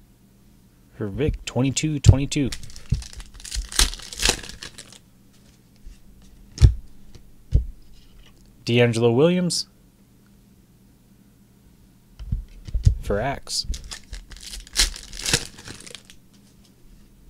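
Foil wrappers crinkle and tear as they are ripped open.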